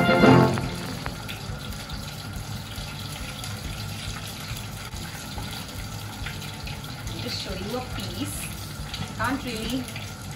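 A metal spatula scrapes a pan.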